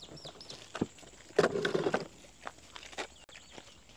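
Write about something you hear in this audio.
Plastic parts clatter onto the pavement.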